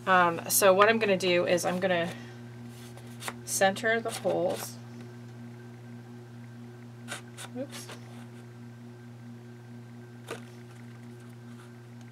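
Paper rustles and taps softly as it is handled.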